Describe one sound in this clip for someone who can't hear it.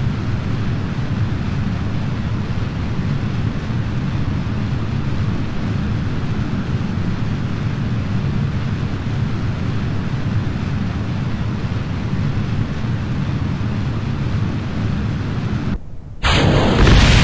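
Rocket engines roar steadily.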